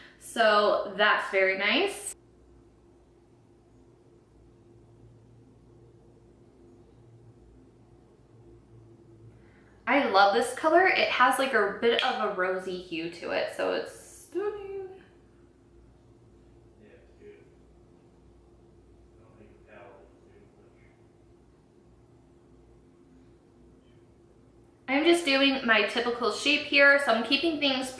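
A young woman talks calmly and closely into a microphone.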